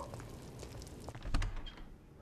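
A light switch clicks.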